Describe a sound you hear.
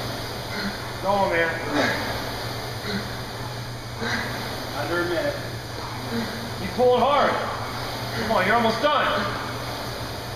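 A man breathes hard and grunts with effort.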